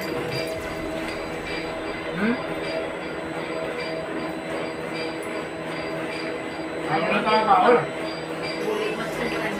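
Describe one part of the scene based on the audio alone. A fan hums steadily.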